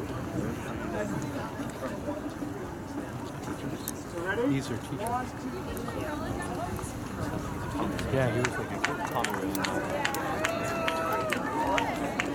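A woman speaks calmly over a loudspeaker outdoors.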